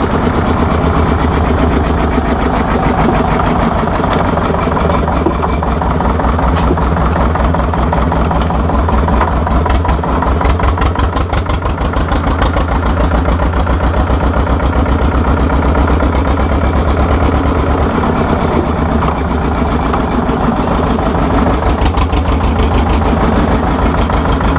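An old tractor engine chugs loudly and steadily close by.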